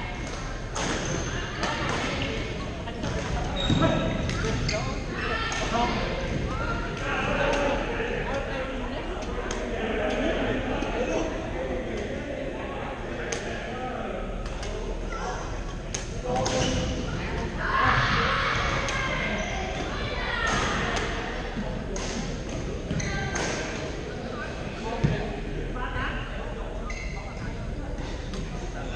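Players' shoes squeak on the hard floor.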